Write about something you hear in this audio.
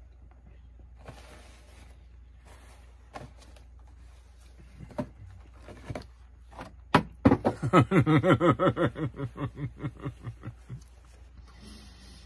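A paper tissue rustles as it is pulled and handled.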